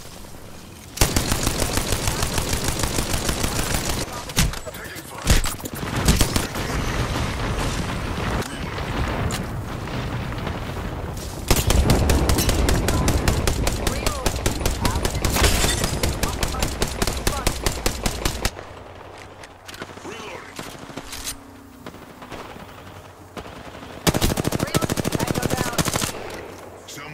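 A rapid-fire gun shoots in long, fast bursts.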